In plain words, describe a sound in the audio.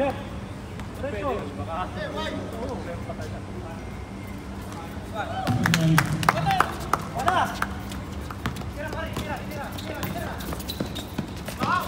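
Men shout and cheer nearby.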